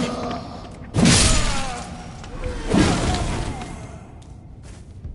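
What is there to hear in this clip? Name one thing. A creature roars and groans as it falls.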